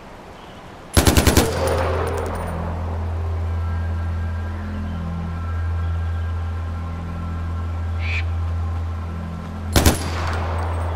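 A rifle fires loud shots that ring out and echo.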